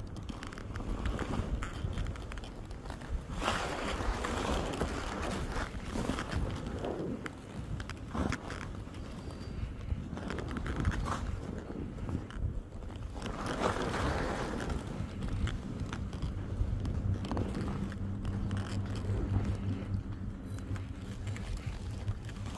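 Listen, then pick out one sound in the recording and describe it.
Strong wind gusts and roars outdoors.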